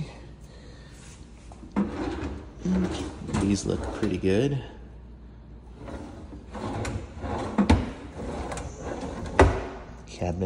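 A drawer slides open and bumps shut.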